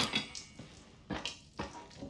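A rusty metal valve wheel creaks as a hand turns it.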